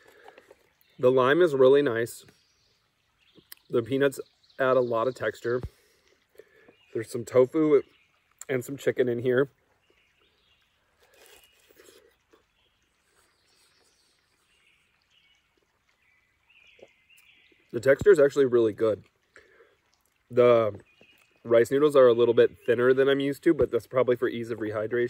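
A man talks calmly and close by, between bites.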